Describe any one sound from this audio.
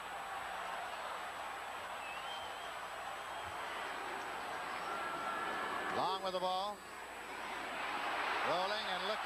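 A large stadium crowd cheers and roars, swelling toward the end.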